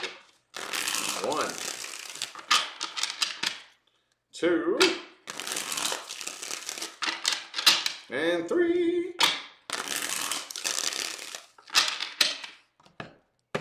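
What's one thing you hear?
Playing cards shuffle and riffle.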